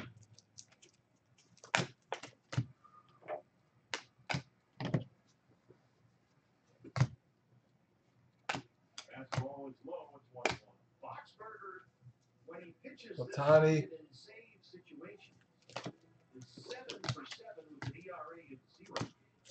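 Trading cards flick and slap as they are shuffled by hand.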